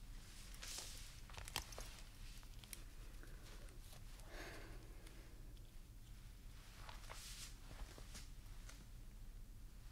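Headphones click and rattle as they are handled.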